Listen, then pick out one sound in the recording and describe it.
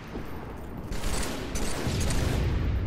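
A rifle fires a quick burst of shots.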